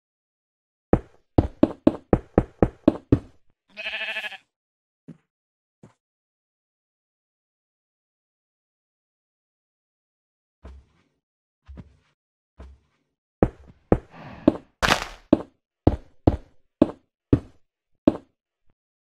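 Blocks are set down with quick, dull taps in a fast series.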